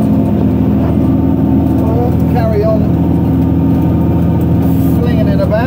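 A tractor engine drones loudly and steadily close by.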